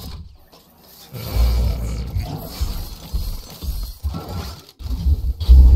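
A loot drone crackles with electric bursts and whooshes.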